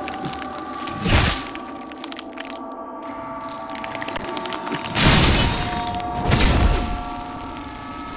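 Heavy blows and bursts of magic boom loudly.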